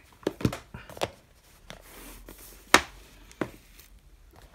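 Plastic cases clack and knock against each other.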